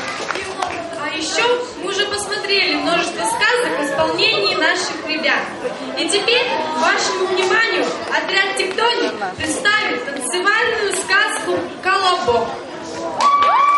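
A girl reads aloud in an echoing hall.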